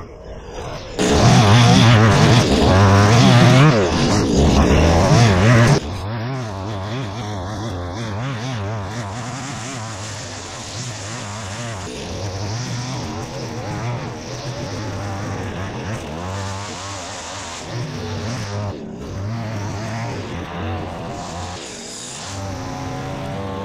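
A string trimmer whirs loudly, cutting grass.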